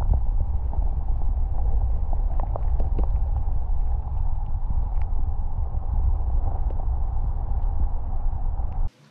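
Water rumbles and churns steadily underwater.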